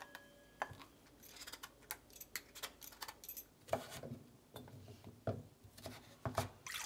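A knife chops pumpkin on a wooden board.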